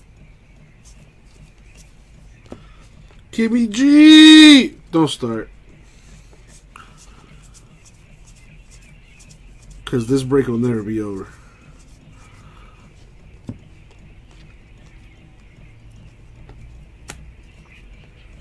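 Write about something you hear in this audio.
Trading cards rustle and slide softly as they are shuffled by hand.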